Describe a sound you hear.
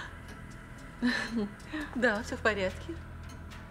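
A middle-aged woman speaks with a playful tone, close by.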